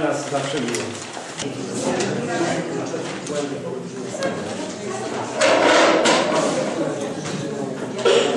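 Several men and women chat at once in the background.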